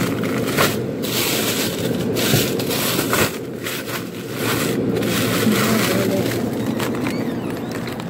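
Plastic bags of frozen food crinkle and rustle.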